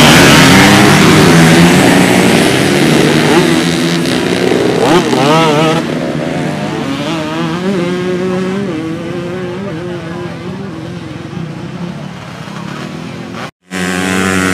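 Dirt bikes roar away and fade into the distance.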